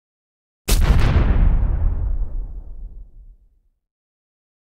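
A deep boom hits and slowly rumbles away.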